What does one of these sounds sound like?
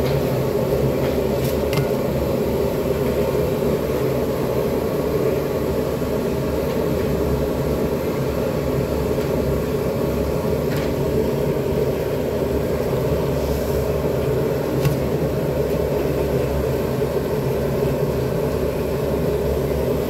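A gas burner roars steadily.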